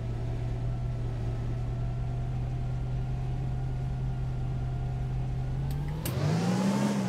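A bus engine idles with a low, steady hum.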